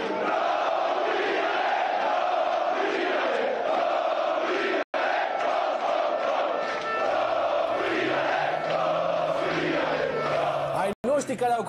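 Players clap their hands in rhythm.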